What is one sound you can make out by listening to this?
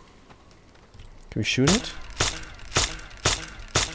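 A gun's metal parts click and clack as it is handled.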